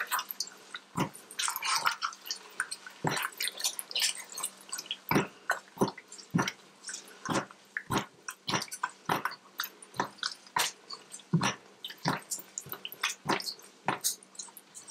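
A spatula scrapes and knocks against a metal pot while stirring thick paste.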